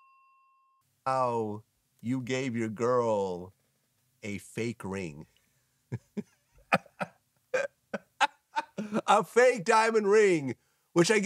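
A man speaks calmly in an interview.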